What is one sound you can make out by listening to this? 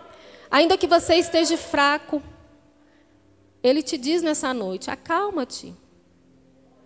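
A woman speaks into a microphone with animation, heard through loudspeakers in an echoing hall.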